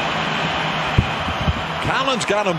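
A basketball thuds against a hoop and bounces.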